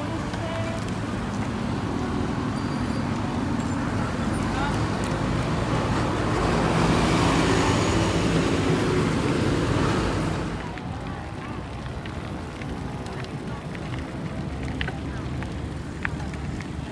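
Bicycle wheels whir on the road.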